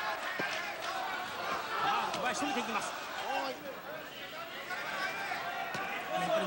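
A crowd of spectators shouts and cheers in a large hall.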